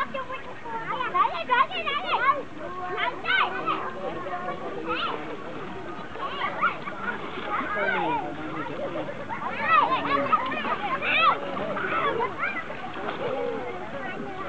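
Children shout and call out while playing in the water nearby.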